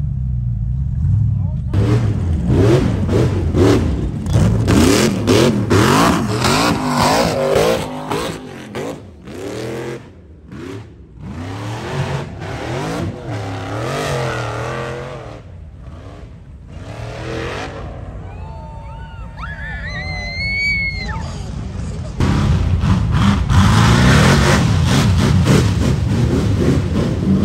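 A buggy's engine revs hard and roars in bursts.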